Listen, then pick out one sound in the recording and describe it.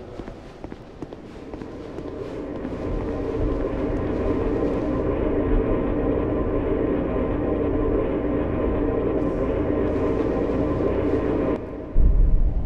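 A deep, rushing roar swells and holds steady, then cuts off.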